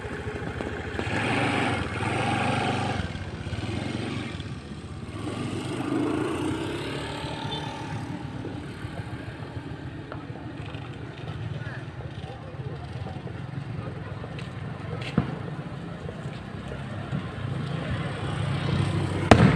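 Small motorcycles ride past on a road.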